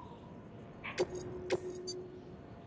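Electronic interface tones click and beep.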